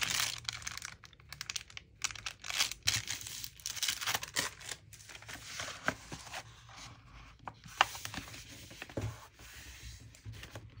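Paper taps and scrapes against a tabletop.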